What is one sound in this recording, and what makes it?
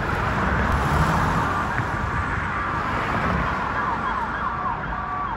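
A car drives along a road with a steady rumble of engine and tyres.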